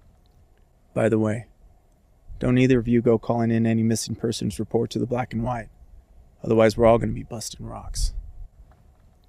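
A man speaks calmly and gravely, close by.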